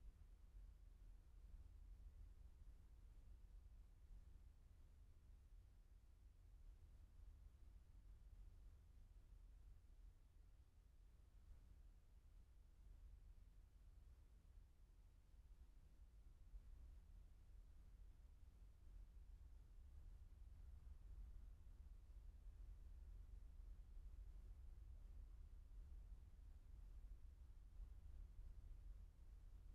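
Wind rumbles steadily across a microphone outdoors.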